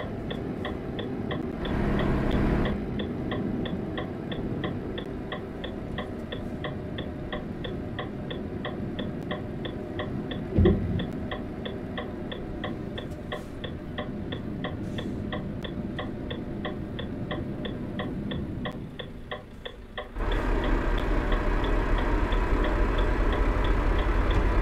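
A truck engine drones steadily as the truck drives along a road.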